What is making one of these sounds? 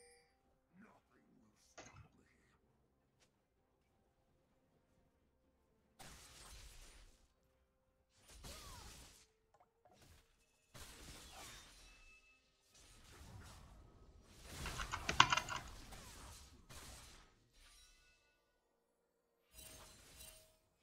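Game spell effects whoosh and clash in bursts.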